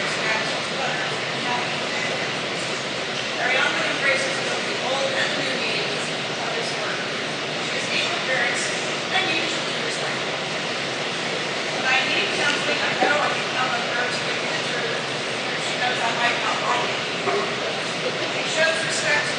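An elderly woman speaks calmly and expressively, close by, in a room with some echo.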